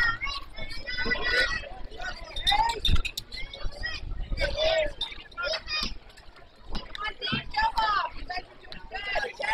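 Young boys shout and cheer in high voices outdoors.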